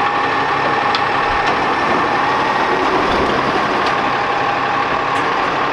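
A garbage truck engine idles loudly with a steady whine.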